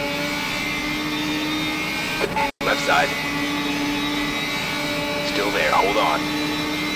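A racing car engine hums steadily at high speed.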